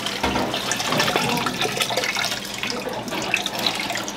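Liquid pours from a metal pot into a vat.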